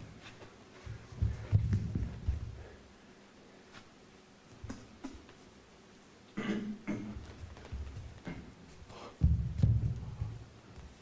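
Bare feet thump on a wooden stage floor.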